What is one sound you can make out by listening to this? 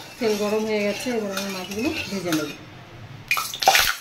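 A metal spatula scrapes around a metal pan.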